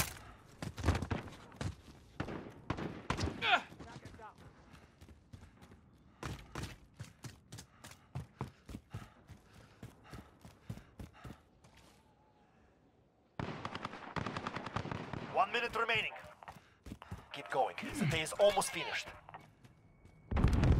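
A rifle fires bursts of sharp, rapid shots.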